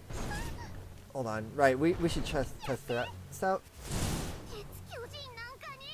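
Video game battle effects whoosh and burst.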